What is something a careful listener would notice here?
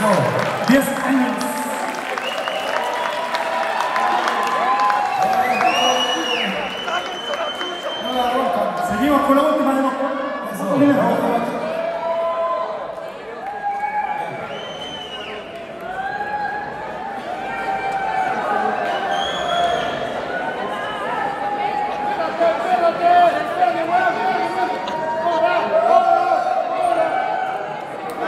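A crowd of men and women cheers and shouts loudly in a large echoing hall.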